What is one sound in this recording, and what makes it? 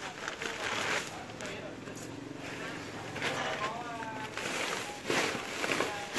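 A sack rustles as it is lifted and shaken.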